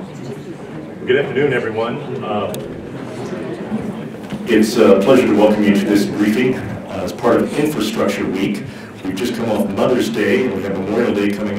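A man speaks steadily through a microphone in a room.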